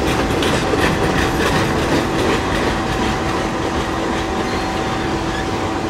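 Freight cars screech and squeal as they roll along.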